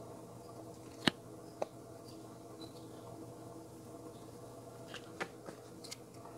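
Playing cards shuffle and tap softly against each other.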